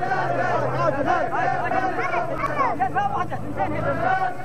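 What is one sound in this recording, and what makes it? Men ululate and shout in high calls over the chant.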